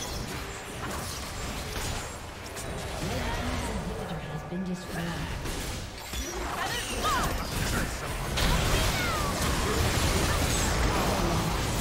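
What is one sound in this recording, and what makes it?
Spell blasts and clashing hits of a video game battle crackle and boom.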